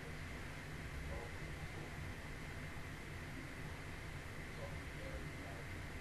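A young woman murmurs softly, close to a microphone.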